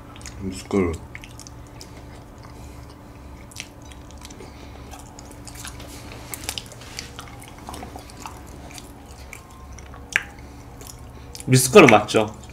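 A young man chews food and smacks his lips close to a microphone.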